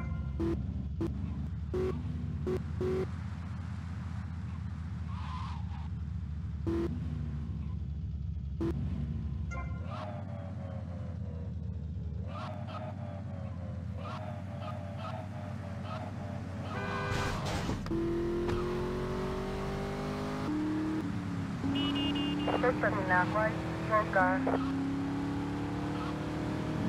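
A car engine hums steadily and revs as the car drives.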